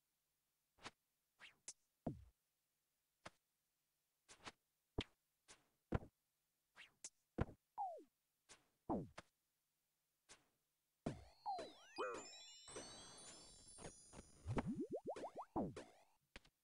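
Short video game combat sound effects of hits and spells ring out repeatedly.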